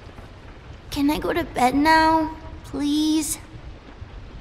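A young girl pleads in a high, tired voice.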